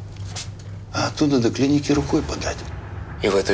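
An older man speaks quietly and intently, close by.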